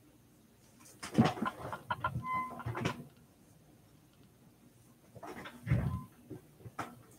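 Objects clatter and rustle close by.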